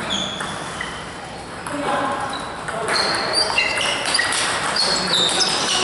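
A ping pong ball clicks back and forth between paddles and a table.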